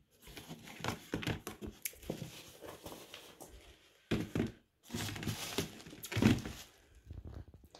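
Shoes rustle and knock against a cardboard box as they are handled.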